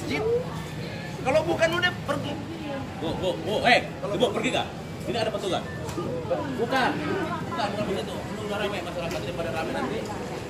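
A man speaks loudly with agitation nearby.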